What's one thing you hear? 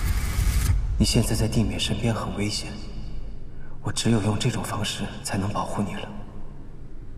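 A young man speaks softly and calmly.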